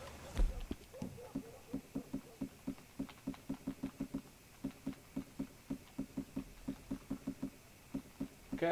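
Soft ticks sound in quick succession as a game menu is scrolled.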